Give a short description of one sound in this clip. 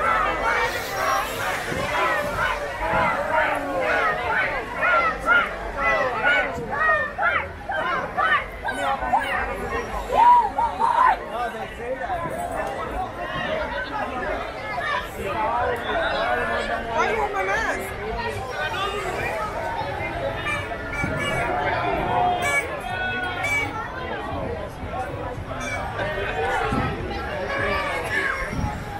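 A large crowd chatters loudly all around outdoors.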